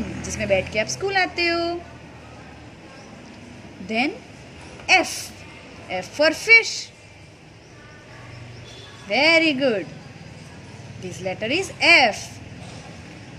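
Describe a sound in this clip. A young girl speaks clearly and brightly, close by.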